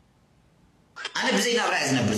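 A man speaks close to a phone microphone.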